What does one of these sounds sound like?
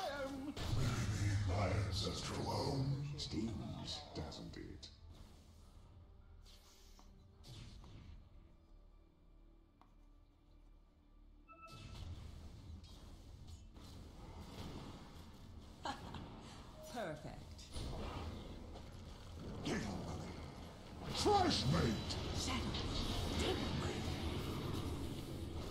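Video game spell effects whoosh, zap and crackle during a battle.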